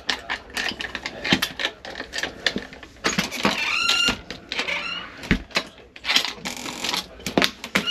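A key card slides into a door lock with clicks.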